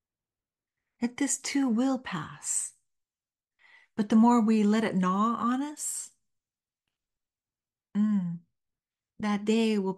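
An elderly woman speaks calmly and closely into a microphone, in short phrases with pauses.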